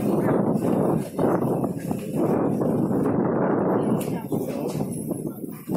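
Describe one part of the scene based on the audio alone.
Strong wind buffets outdoors.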